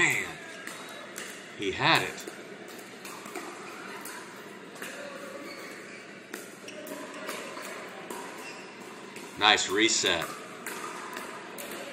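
Paddles pop against a plastic ball in an echoing indoor hall.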